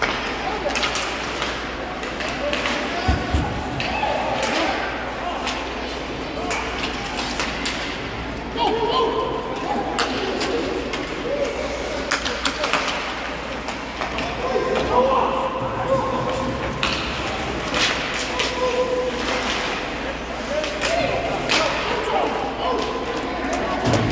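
Ice hockey sticks clack against a puck in an echoing rink.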